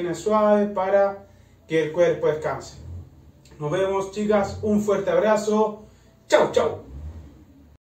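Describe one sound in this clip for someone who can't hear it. A man speaks with animation in a small echoing room.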